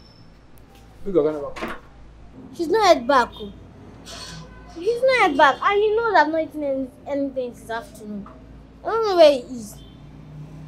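A boy speaks with animation nearby.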